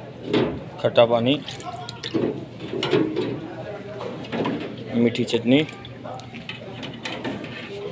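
A metal ladle scrapes and clinks against a steel tray.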